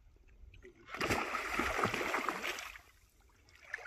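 A net scoops through the water with a rushing splash.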